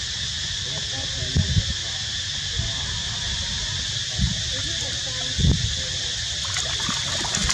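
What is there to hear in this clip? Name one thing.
A small monkey splashes in shallow water.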